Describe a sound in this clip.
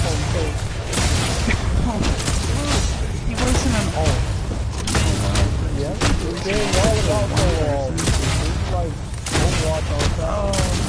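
Video game energy weapons fire in rapid bursts.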